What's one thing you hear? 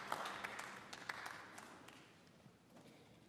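Applause from an audience dies away in a large hall.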